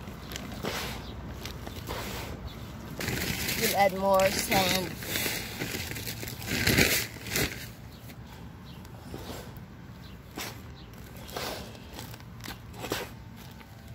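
Hands mix soil in a plastic tub.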